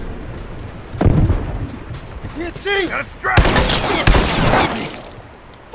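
Gunshots crack loudly in quick bursts.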